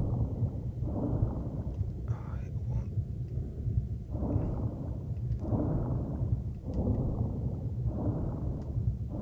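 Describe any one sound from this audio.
Bubbles gurgle upward.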